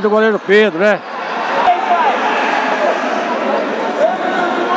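A crowd murmurs and shouts in a large echoing hall.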